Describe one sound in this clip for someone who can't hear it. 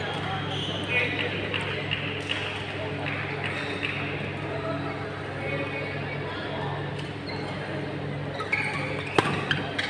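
A racket strikes a shuttlecock with a sharp pop.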